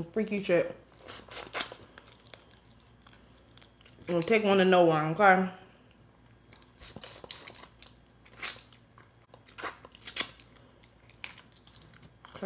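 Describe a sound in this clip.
A young woman chews and crunches food close up.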